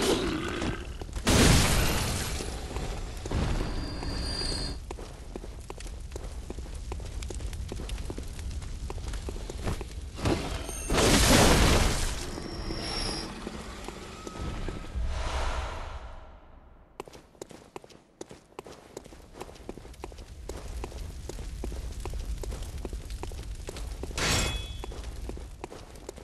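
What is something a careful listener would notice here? Footsteps run over stone paving.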